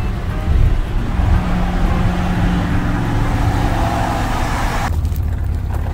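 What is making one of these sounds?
Road noise rumbles steadily inside a moving car.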